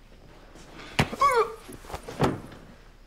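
A fan swishes through the air.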